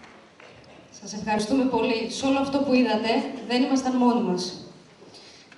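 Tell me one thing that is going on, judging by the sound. An elderly woman speaks clearly in a large echoing hall.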